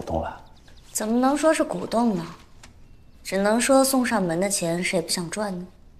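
A young woman answers calmly close by.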